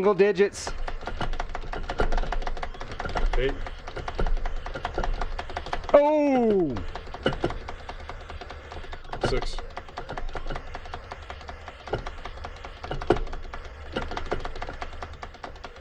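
Rapid electronic shots and bleeps ring out from an arcade game.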